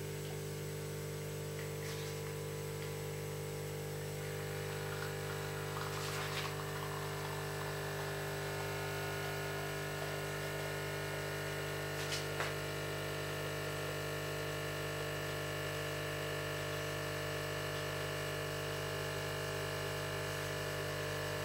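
An espresso machine's pump hums steadily.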